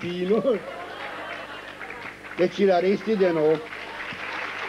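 An elderly man sings in a wavering voice through a microphone.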